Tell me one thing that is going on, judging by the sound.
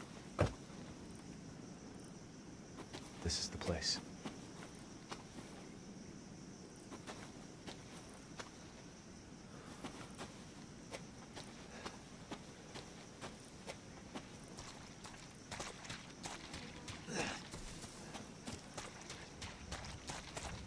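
Footsteps crunch steadily over dry leaves and earth.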